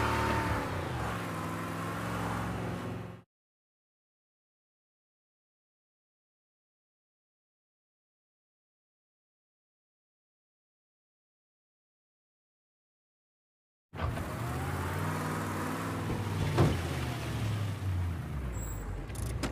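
A car engine hums as a car drives along.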